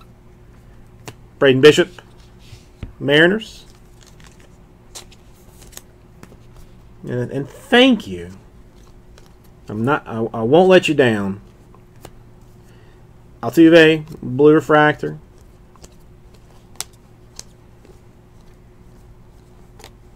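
Trading cards rustle and click softly as hands shuffle through them.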